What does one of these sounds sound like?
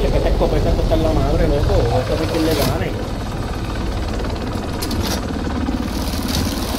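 A helicopter's rotor thumps and roars steadily overhead.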